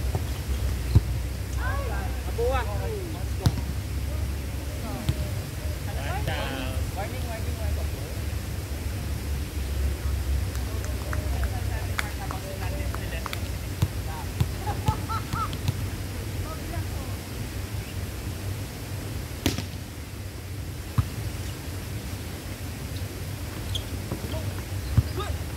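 A volleyball is struck with sharp thuds again and again.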